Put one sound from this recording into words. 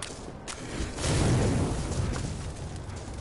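A campfire crackles and roars.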